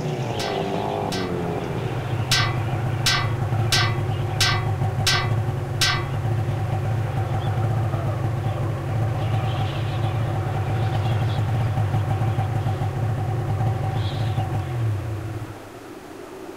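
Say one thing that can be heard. A snowmobile engine drones steadily, then cuts off.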